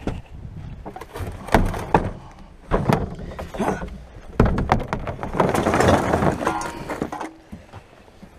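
A bin is tipped, its contents clattering and thudding out.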